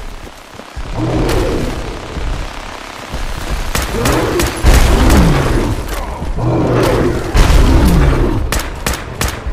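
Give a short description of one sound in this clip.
A creature roars and snarls close by.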